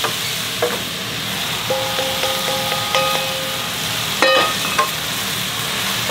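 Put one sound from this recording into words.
Meat slides from a pan into a pot.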